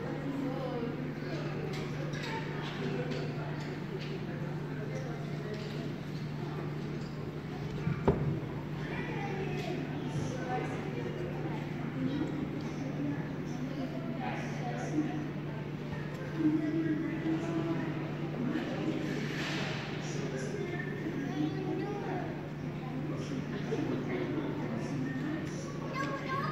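Young children chatter and babble nearby.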